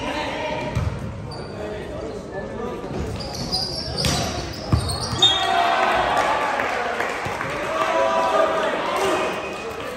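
A volleyball thumps off players' arms.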